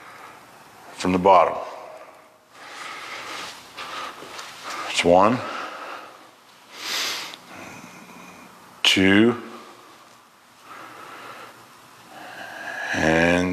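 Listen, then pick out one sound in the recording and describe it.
A man speaks loudly nearby in short bursts, his voice sliding up and down in pitch.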